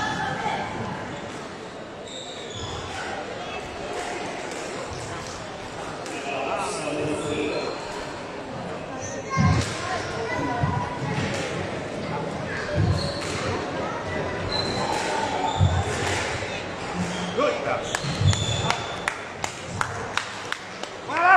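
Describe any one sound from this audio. A squash ball smacks against the walls in an echoing court.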